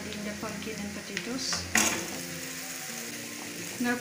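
Chunks of potato tumble into a frying pan.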